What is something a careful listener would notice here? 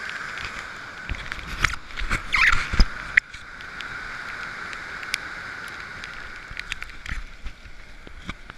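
Wind buffets the microphone in gusts.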